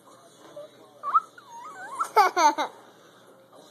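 A toddler laughs and squeals with delight.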